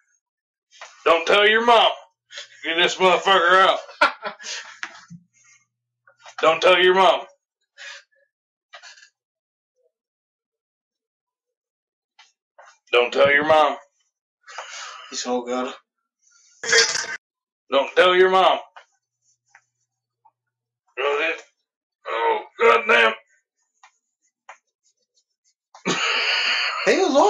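A man speaks in short, animated bursts close to a microphone, with pauses between.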